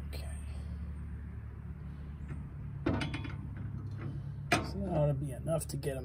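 Metal parts clank as a hitch bracket is fitted into place.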